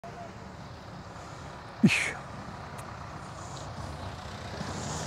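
A tractor engine idles steadily nearby.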